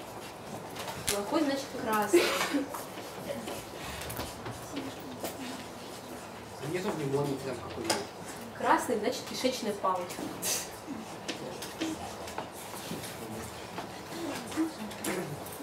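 A man lectures calmly, heard from across a room.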